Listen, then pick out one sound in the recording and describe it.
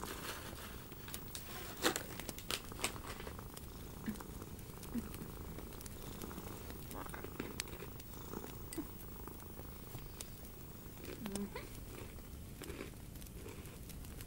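Hands rustle and rub over a surface close by.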